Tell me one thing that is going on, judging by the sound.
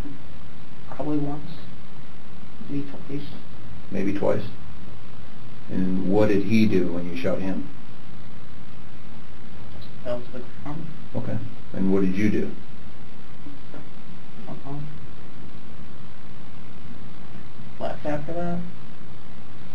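A young man speaks quietly and haltingly, heard through a slightly hissy recording.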